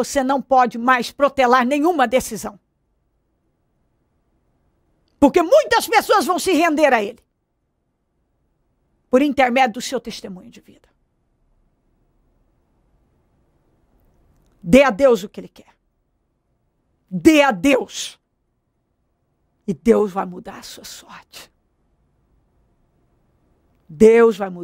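A young woman speaks with animation close to a microphone, in short bursts with pauses.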